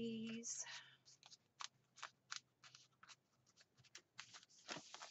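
Paper pages rustle and flip in a ring binder.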